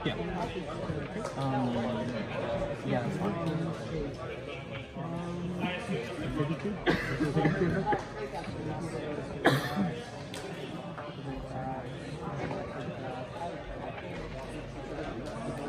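Cards slap lightly onto a cloth mat.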